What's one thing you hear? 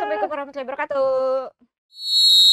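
A young woman calls out cheerfully close to a microphone.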